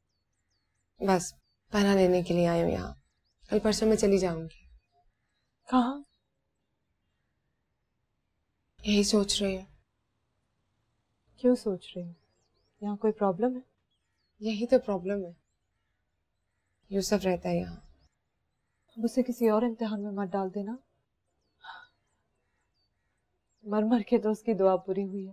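A young woman speaks calmly and quietly, close by.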